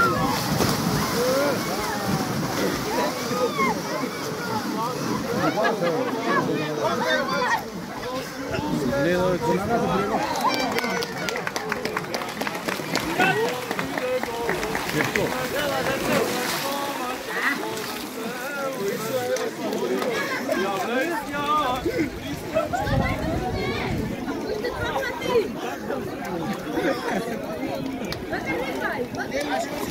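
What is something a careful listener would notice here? A large crowd of men and women talks and shouts outdoors.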